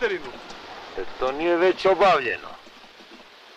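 A man speaks roughly, close by.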